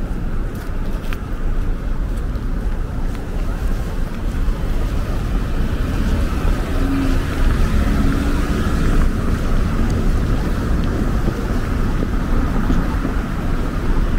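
Cars drive by on a wet city street.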